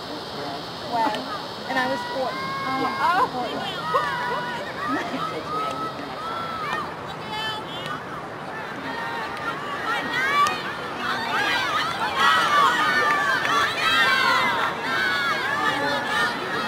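Young women shout and cheer from the sidelines outdoors.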